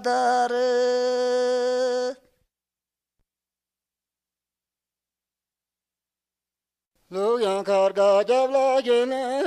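A woman sings a high, long held note, then falls silent and starts singing again.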